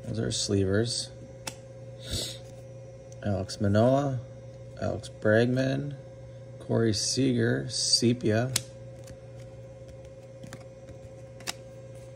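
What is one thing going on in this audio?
Someone shuffles and flicks through trading cards.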